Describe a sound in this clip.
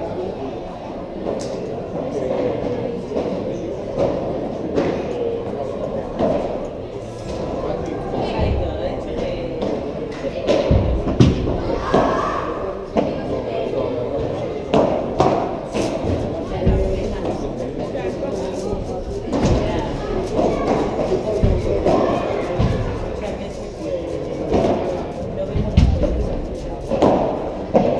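A ball bounces on the court and off the walls.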